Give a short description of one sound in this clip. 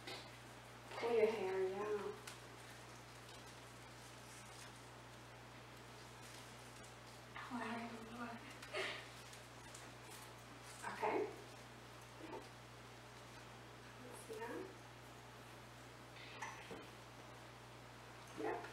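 A woman speaks calmly and warmly nearby.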